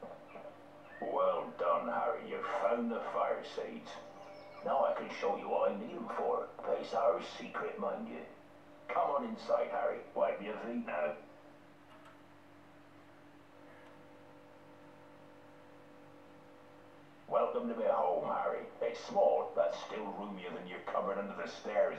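A deep-voiced man speaks warmly, heard through a loudspeaker.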